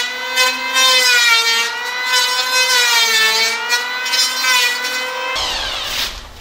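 An electric sander whines against wood.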